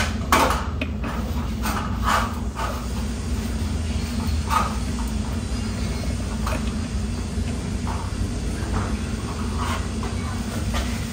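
Small plastic and metal parts click and rattle as hands handle a motor.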